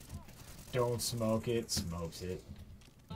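A rifle fires a short burst of gunshots.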